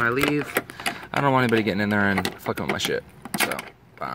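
A key turns in a padlock and the lock clicks open.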